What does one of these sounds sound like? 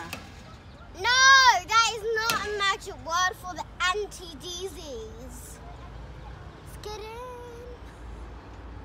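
A young girl calls out loudly and chatters close by.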